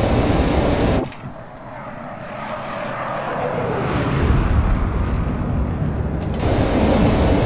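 A twin-engine jet fighter climbs past on afterburner, its roar swelling.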